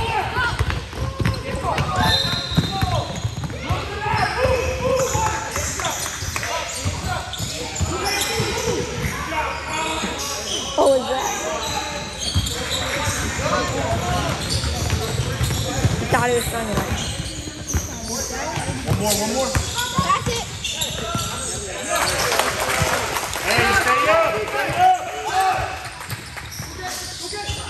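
Spectators and players shout and talk in a large echoing gym.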